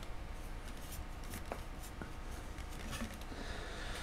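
A thin metal tool taps and scrapes against a hard sculpture.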